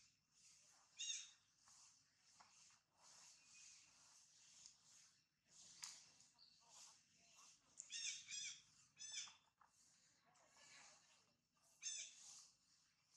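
A baby monkey squeaks in short high cries.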